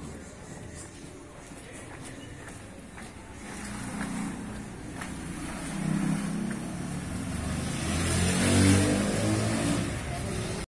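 Footsteps scuff on a concrete floor.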